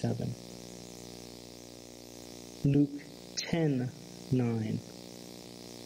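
A man speaks slowly and earnestly through a microphone, in short phrases with pauses.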